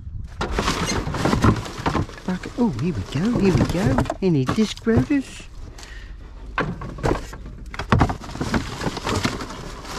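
Cardboard and rubbish rustle and crinkle as hands rummage through a bin.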